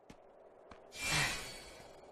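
A magical burst shimmers and sparkles.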